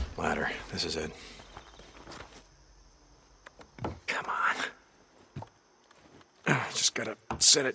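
A wooden ladder knocks and scrapes as it is dragged and set up.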